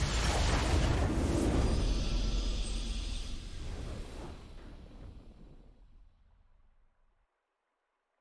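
A deep, booming victory fanfare from a game swells and slowly fades away.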